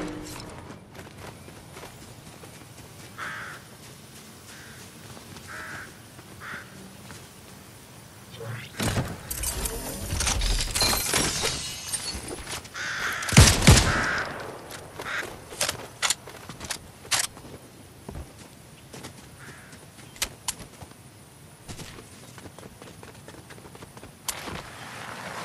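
Footsteps run quickly over grass and dirt.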